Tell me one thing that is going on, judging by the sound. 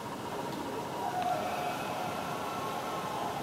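A hockey video game's electronic organ tones play through a television speaker.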